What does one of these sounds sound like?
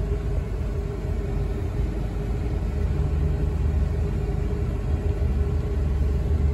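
A car engine hums steadily from inside the cabin as the car rolls slowly along.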